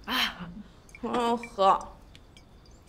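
A young woman speaks loudly nearby.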